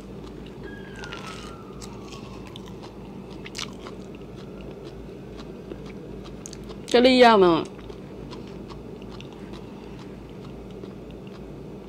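A young woman chews food with wet, smacking sounds.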